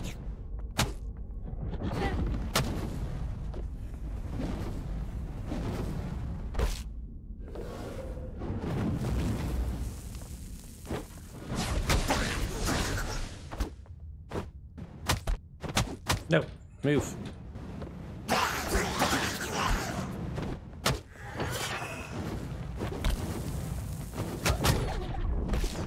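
Weapon blows strike and clang repeatedly.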